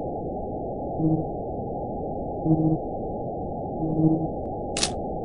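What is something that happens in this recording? Short electronic blips sound as dialogue text pops up.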